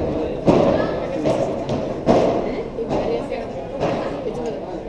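Padel balls are struck with rackets, each hit a sharp pop that echoes in a large hall.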